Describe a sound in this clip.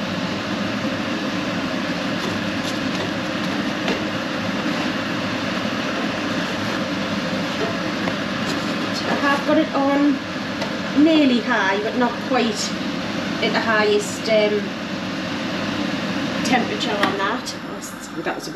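Flatbread sizzles softly in a hot pan.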